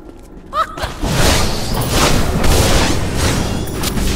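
Magic blasts crackle and burst loudly.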